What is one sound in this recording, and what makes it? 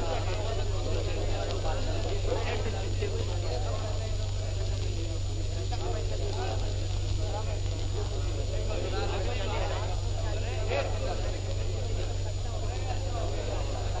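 A crowd of men chatters together.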